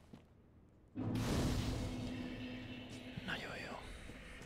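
A bonfire flares up with a whoosh.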